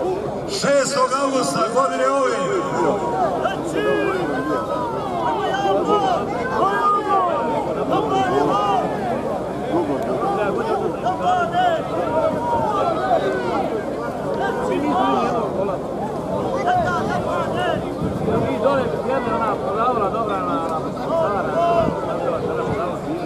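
A crowd of men and women chatters loudly nearby, outdoors.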